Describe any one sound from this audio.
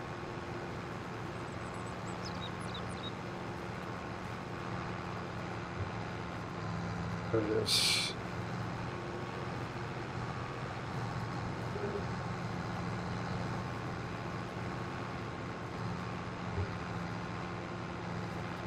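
A tractor engine hums steadily as it drives.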